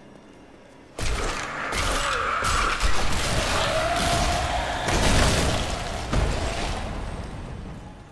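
Weapons clash and bones crunch in a loud fight.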